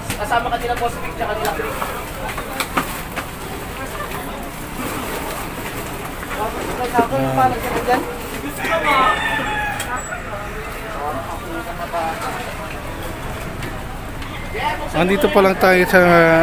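Men and women talk and call out nearby in a busy crowd.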